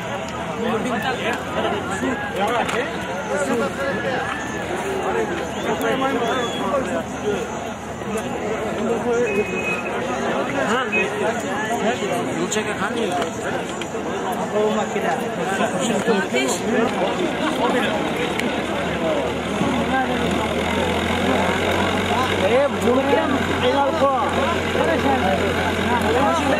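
A large outdoor crowd of men chatters and shouts.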